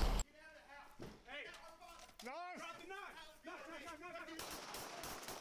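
Men shout commands from a distance outdoors.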